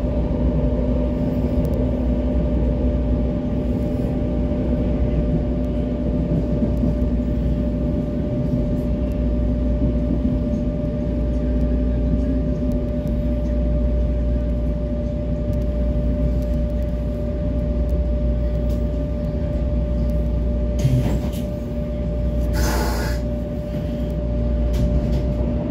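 A subway train rumbles steadily along the tracks and slows down.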